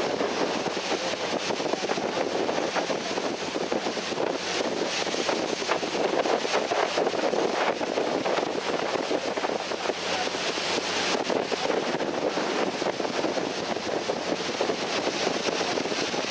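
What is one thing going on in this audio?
A boat's engine hums steadily.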